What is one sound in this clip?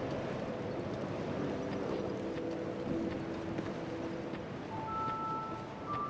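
Footsteps thud on grass as a figure runs.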